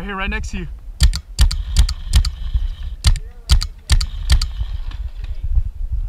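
A paintball marker fires in rapid bursts.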